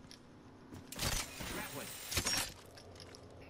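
A zipline line whirs as a character slides along it.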